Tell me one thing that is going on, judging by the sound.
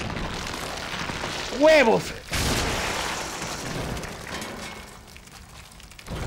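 Blood splatters with a wet crunch.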